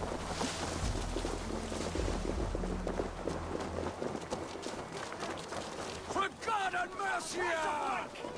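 Quick footsteps run over stone and grass.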